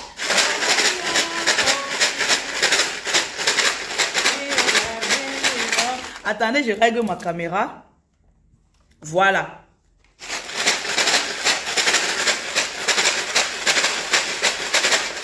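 A plastic bottle with something inside rattles as it is shaken in a quick rhythm.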